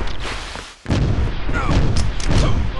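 A rocket explodes with a loud blast.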